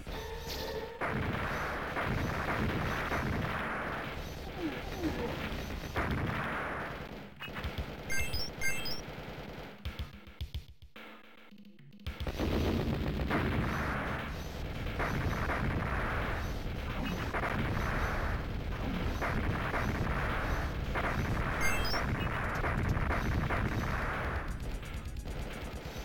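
Arcade gunfire rattles rapidly.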